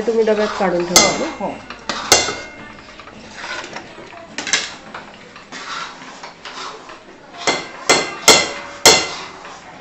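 A metal ladle knocks sharply against a steel pot.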